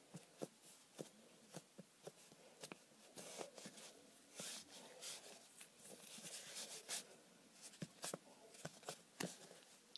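Fingers press and squish soft modelling clay on a wooden table.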